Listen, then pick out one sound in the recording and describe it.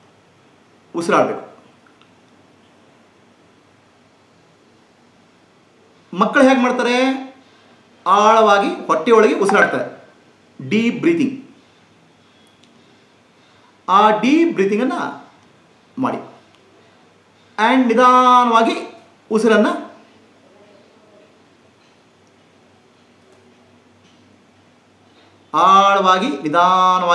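A middle-aged man speaks calmly and close to a microphone, in short phrases with pauses.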